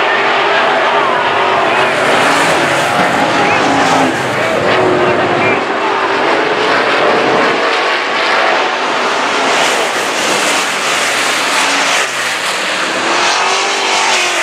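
A crowd of spectators murmurs and calls out nearby.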